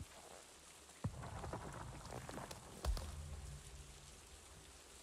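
Leafy plant stems rustle and snap as they are pulled.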